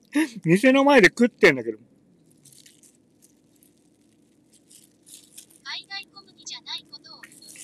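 A plastic bag crinkles in a hand.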